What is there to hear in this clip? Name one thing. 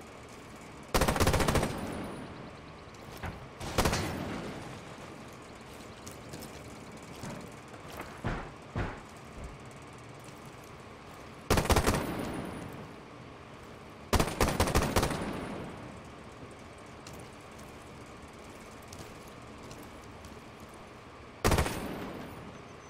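A rifle fires loud, sharp bursts of shots.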